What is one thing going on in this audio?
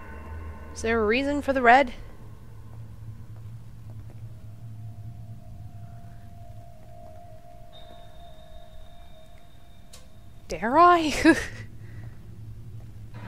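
Slow footsteps creak softly on a wooden floor.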